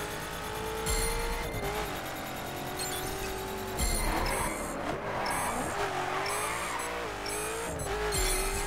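A race car engine roars at high revs, its pitch dipping and rising with gear shifts.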